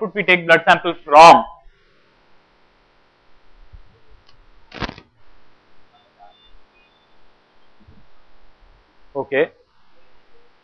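A man speaks into a microphone in bursts, with pauses.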